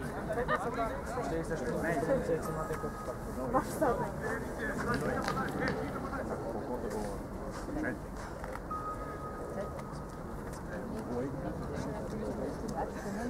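Men shout to each other across an open outdoor pitch.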